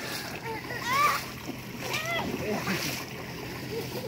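A man splashes water with his hands.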